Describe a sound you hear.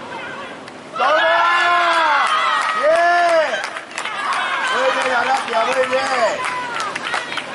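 Young women shout and cheer in celebration outdoors.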